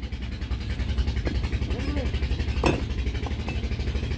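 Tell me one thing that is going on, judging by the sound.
Bricks knock against each other.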